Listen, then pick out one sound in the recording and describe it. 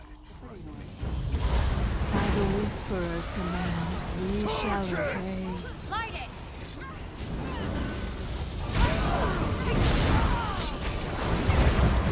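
Fire spells roar and crackle in a fierce battle.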